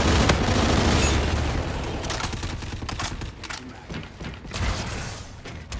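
Gunshots fire in rapid bursts with a loud booming blast.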